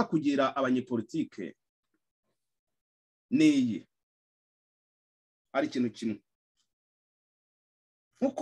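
A man speaks calmly in short phrases, close to the microphone, with pauses between them.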